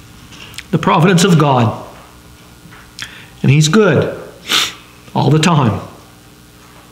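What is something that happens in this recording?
An older man speaks slowly and calmly into a microphone, in short phrases with pauses.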